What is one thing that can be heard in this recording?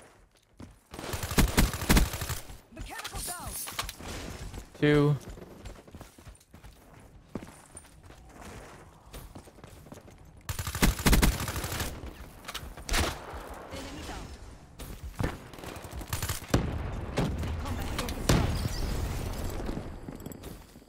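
Rapid gunfire bursts from a video game.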